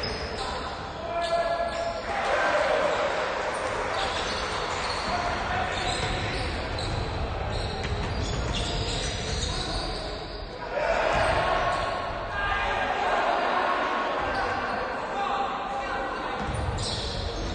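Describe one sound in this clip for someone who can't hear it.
Players shout and call out in a large echoing gym.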